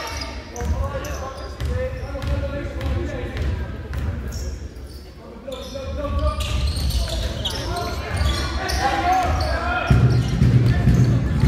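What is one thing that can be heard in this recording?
Spectators talk and call out in the hall.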